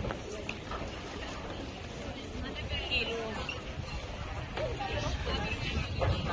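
A crowd of men and women chatters outdoors, with overlapping voices.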